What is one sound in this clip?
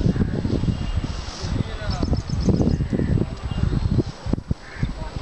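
Cows tear and munch grass close by.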